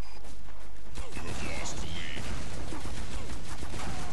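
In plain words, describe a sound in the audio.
Explosions burst close by, with a rough roar.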